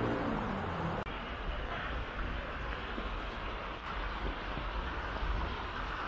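Water flows gently in a canal outdoors.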